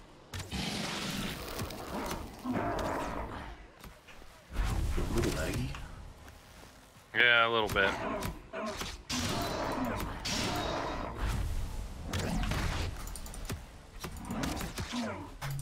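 Blades strike and clang against creatures in quick blows.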